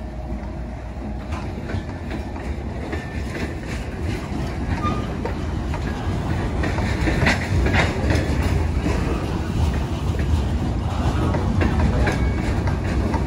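Freight cars clatter and squeal over the rails.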